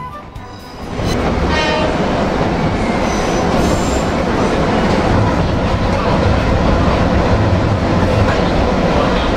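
A train rumbles and rattles along the tracks, heard from inside a carriage.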